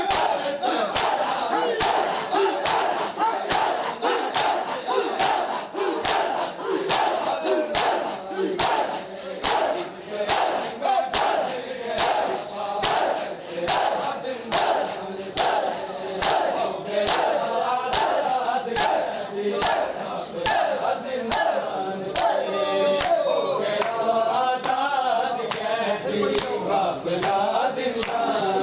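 A crowd of men chants loudly together.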